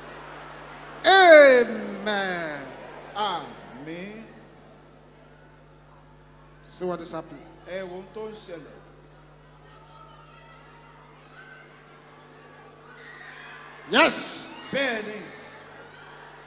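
A man shouts prayers fervently through a loudspeaker in a large echoing hall.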